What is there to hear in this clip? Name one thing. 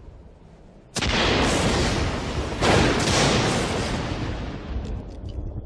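Thunder cracks and rumbles loudly.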